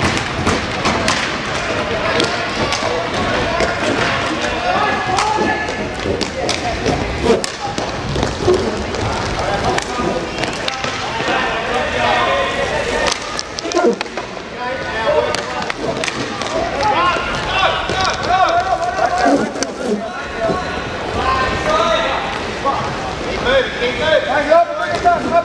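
Hockey sticks clack against a ball and the floor.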